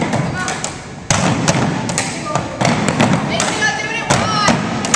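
Bamboo poles clap together and knock on a wooden floor in a steady rhythm.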